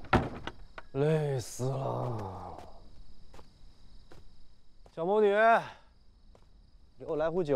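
A young man speaks wearily, close by.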